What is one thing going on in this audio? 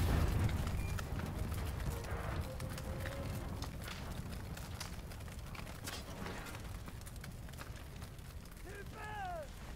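A fire crackles and pops nearby.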